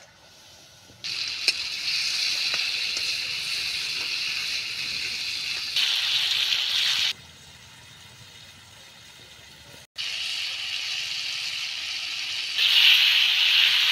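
Food sizzles and hisses as it fries in a hot pan.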